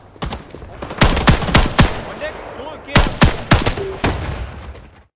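Gunshots fire in quick, loud bursts close by.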